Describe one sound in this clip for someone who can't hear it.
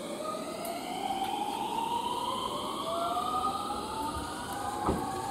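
An electric train pulls away with a rising motor whine.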